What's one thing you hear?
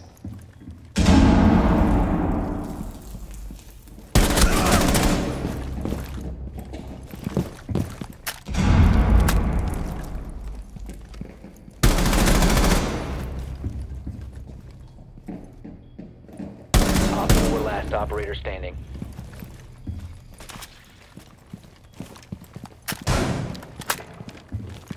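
Rifle shots ring out in loud bursts, each echoing and fading away.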